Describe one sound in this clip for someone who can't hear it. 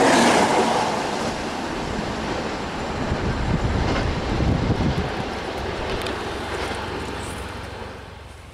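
An electric passenger train rumbles away along the tracks and fades into the distance.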